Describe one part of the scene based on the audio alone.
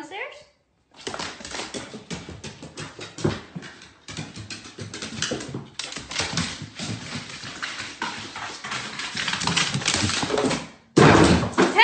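A dog's paws thump quickly down wooden stairs.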